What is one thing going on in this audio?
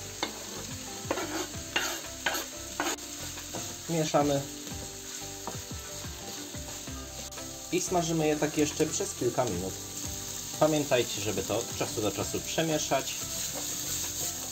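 Food sizzles in a hot frying pan.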